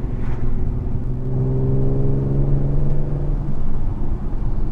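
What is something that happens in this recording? A car engine drones louder and climbs slightly in pitch, then settles.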